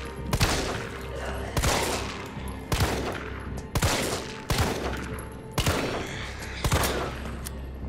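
A handgun fires shot after shot in a small room.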